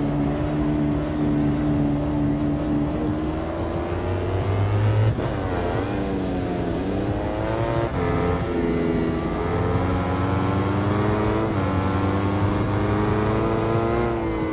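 A racing motorcycle engine roars loudly, its pitch rising and falling as it shifts gears.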